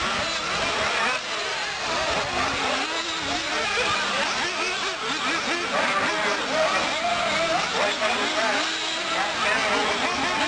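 Small electric model cars whine as they race, their motors rising and falling in pitch.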